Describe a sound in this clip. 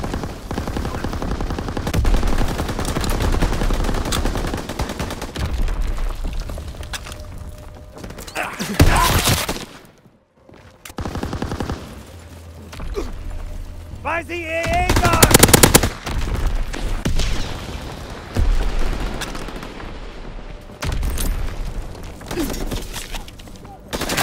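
Guns fire in rapid bursts and single sharp shots.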